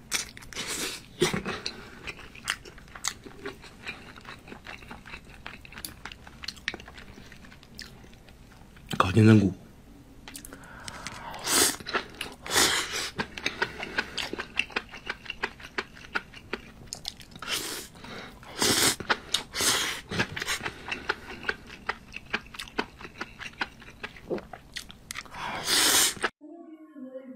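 A man chews and crunches crispy food close to the microphone.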